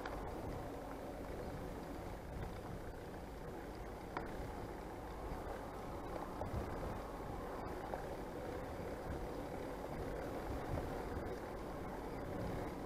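Wind buffets a microphone outdoors, rumbling steadily.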